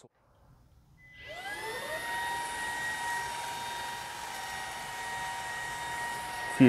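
A cordless vacuum cleaner whirs up to speed and hums steadily with a high whine.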